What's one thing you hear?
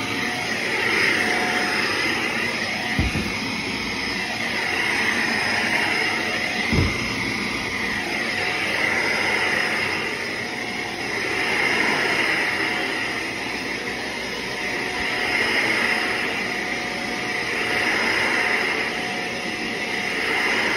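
A vacuum cleaner motor whirs steadily, rising and falling as it is pushed back and forth over carpet.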